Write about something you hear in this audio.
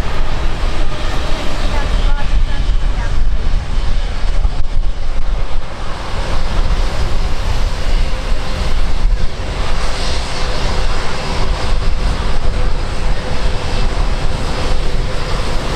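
A jet airliner's engines whine and rumble as it taxis close by.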